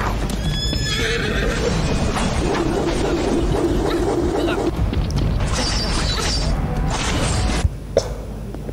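Fiery game combat effects whoosh and crackle.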